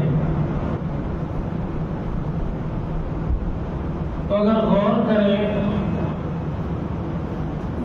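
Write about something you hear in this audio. A man speaks with emotion, heard through a microphone in an echoing room.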